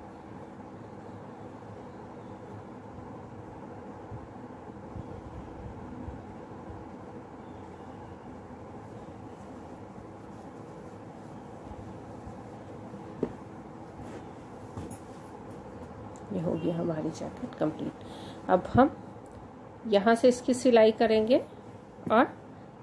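Hands softly rustle a knitted garment.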